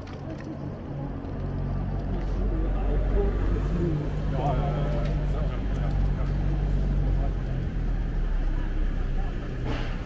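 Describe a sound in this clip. A bus engine hums low as it draws closer.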